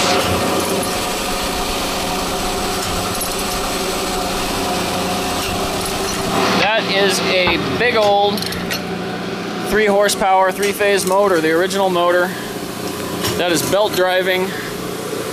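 A machine motor hums steadily.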